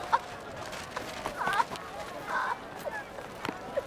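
A woman sobs and cries out loudly.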